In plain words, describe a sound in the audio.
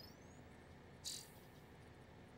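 A game menu gives a short soft click as a selection changes.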